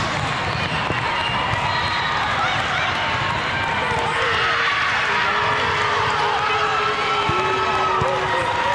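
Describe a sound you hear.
A large echoing hall fills with the busy chatter and shouts of a crowd.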